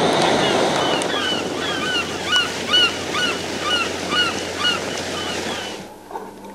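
Seagulls cry overhead.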